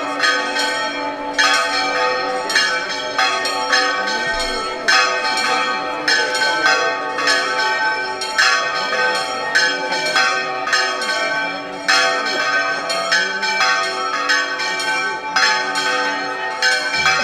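A pipe plays a lively tune.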